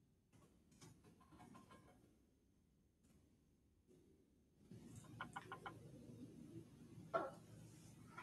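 Small metal tools clink and rattle.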